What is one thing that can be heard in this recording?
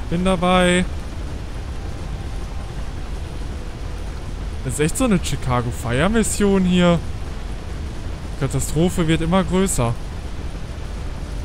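A fire hose sprays water with a steady rushing hiss.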